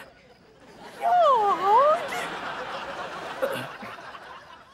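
A young woman speaks with a puzzled tone.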